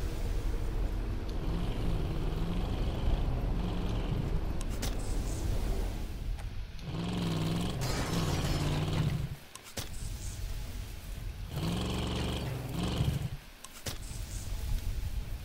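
A car engine revs and hums as a car drives over rough ground.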